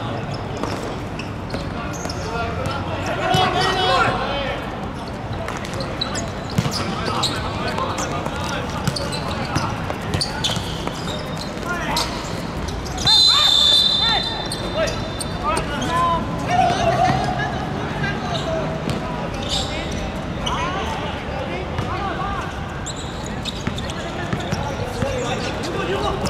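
Young men shout and call to each other outdoors at a distance.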